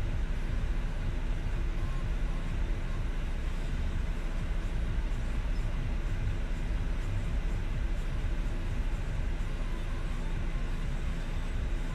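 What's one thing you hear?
Trash bags rustle as a person rummages through a dumpster.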